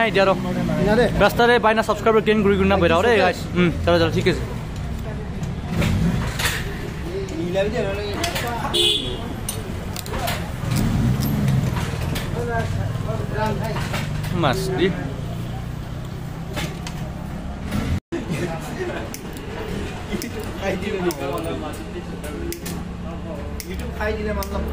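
Metal tools clink and tap against a motorbike.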